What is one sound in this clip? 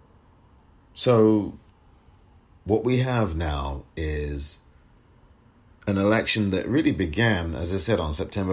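A man speaks with animation through a microphone, in short bursts with pauses.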